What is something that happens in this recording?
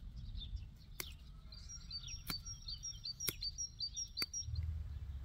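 Flower stems snap as they are picked by hand.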